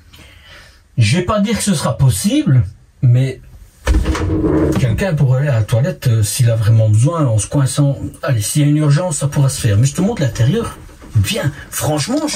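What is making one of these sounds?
A middle-aged man talks with animation into a clip-on microphone.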